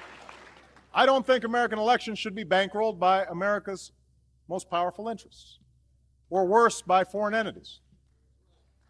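A man speaks calmly through a microphone and loudspeakers in a large hall.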